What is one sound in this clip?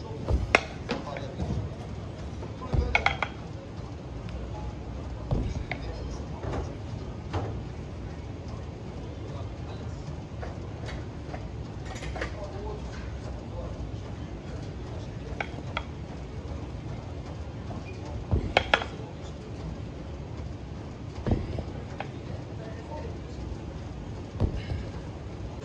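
Kettlebells clank against each other as they are lifted and set down.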